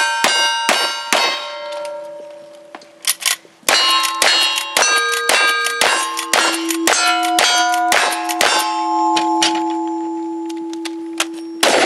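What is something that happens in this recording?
Rapid gunshots crack outdoors.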